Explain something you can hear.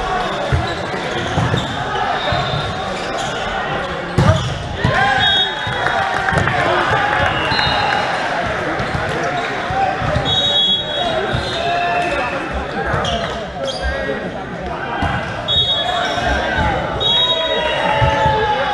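Young men shout and call out to each other across an echoing gym.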